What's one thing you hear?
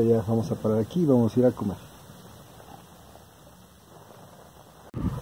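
Fingers scrape softly through loose gravel.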